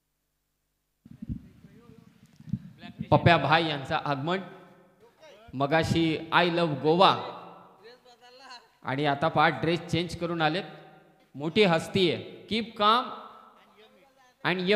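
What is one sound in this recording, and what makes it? A man commentates with animation through a microphone.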